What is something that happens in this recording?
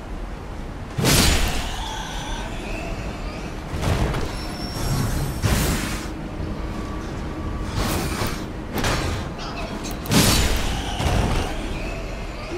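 A sword clangs and slashes in heavy blows.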